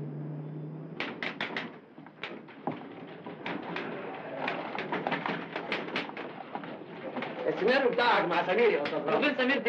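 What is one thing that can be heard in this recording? Typewriters clatter with quick keystrokes.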